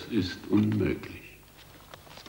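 An elderly man speaks sternly, close by.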